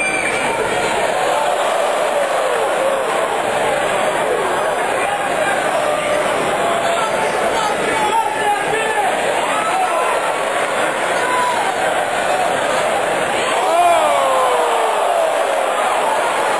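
A large crowd cheers and shouts loudly throughout, in a big echoing arena.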